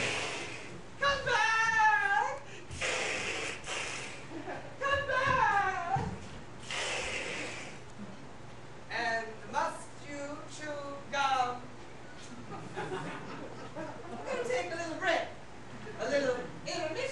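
A woman sings in a high, wavering voice.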